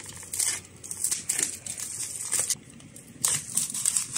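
A knife slices through plastic wrap.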